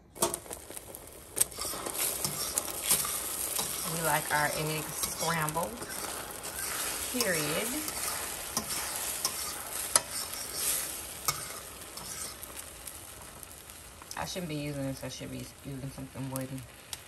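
Eggs sizzle softly in a hot pan.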